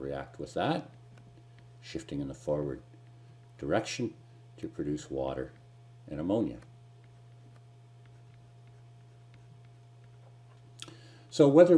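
A middle-aged man speaks calmly and slowly into a close microphone, with long pauses.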